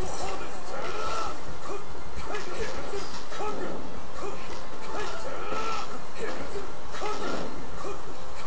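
Fighting game hit and slash effects sound in rapid bursts.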